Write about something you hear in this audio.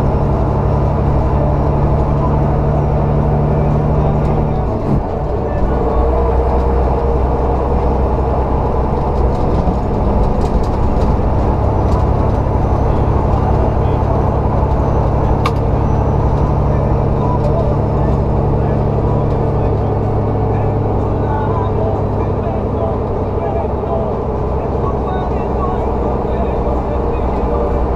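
A truck engine hums steadily from close by.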